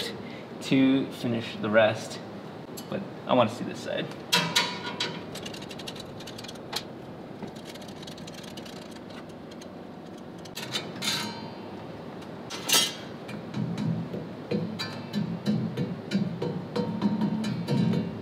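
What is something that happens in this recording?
Metal tools click and clink against engine parts.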